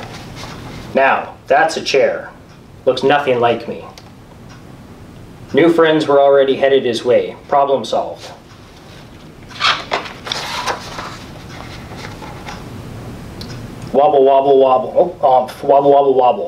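A man reads aloud from a book in an expressive voice, close by.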